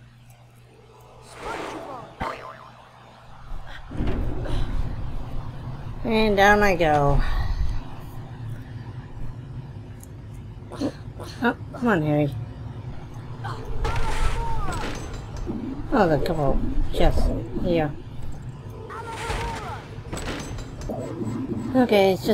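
A magic spell crackles and whooshes.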